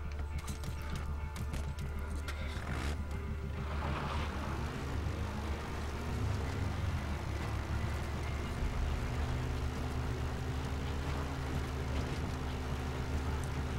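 A jeep engine rumbles steadily as the vehicle drives along.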